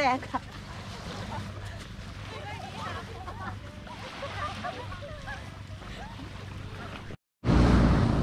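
Young women shout and laugh excitedly outdoors.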